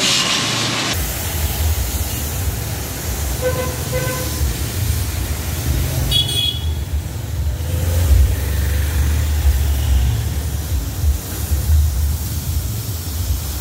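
A heavy truck engine rumbles.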